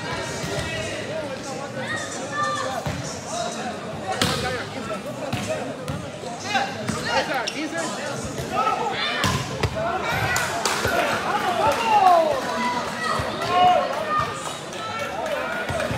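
A crowd of men shouts and cheers in a large echoing hall.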